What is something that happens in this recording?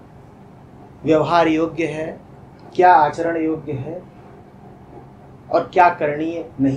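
A man speaks calmly and clearly into a nearby microphone, pausing between phrases.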